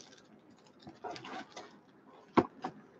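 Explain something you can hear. A cardboard box scrapes and rustles close by.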